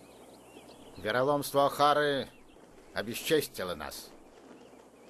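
A middle-aged man speaks loudly and sternly, close by.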